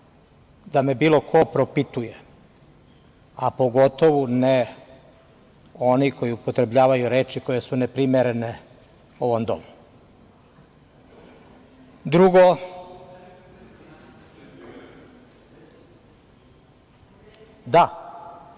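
A man speaks calmly through a microphone in a large hall, with pauses between phrases.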